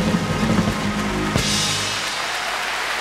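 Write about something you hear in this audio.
A jazz band plays live, ending on a final chord.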